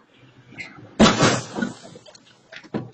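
A car bumps into a parked car with a thud.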